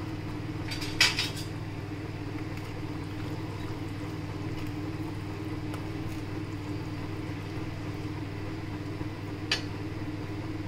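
A metal spatula scrapes and knocks against a pan.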